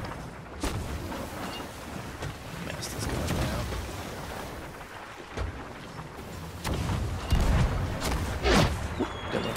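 Cannons boom in sharp, heavy blasts.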